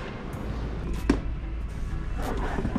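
A cardboard box slides onto a wire shelf.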